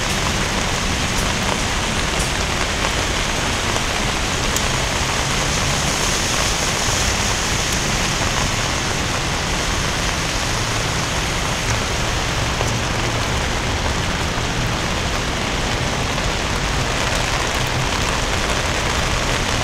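Traffic rumbles steadily on a road nearby.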